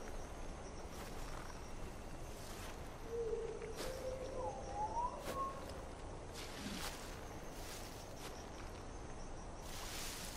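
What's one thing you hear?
Tall dry grass rustles as someone creeps through it.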